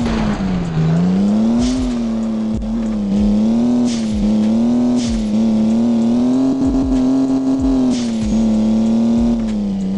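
A car engine drones steadily, its pitch rising and falling gently.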